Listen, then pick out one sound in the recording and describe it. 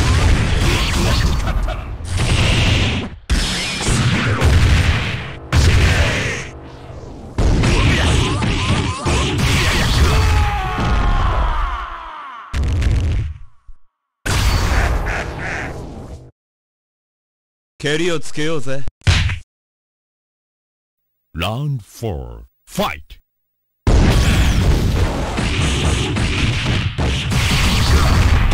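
Punches and kicks land with heavy thuds and cracks in a video game fight.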